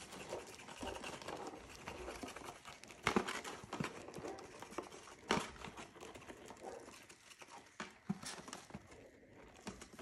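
Powder patters softly out of a cardboard box being tapped and shaken.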